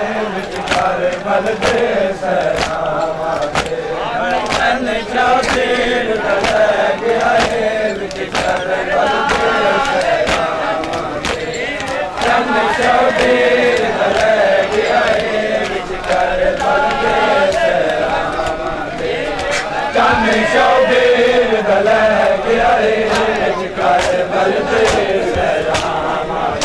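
A crowd of men chants loudly together outdoors.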